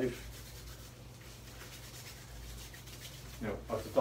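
Hands rub together briskly.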